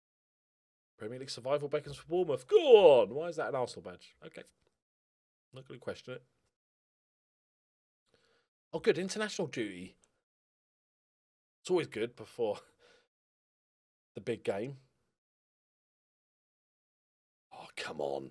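A man talks with animation into a close microphone, in short bursts with pauses.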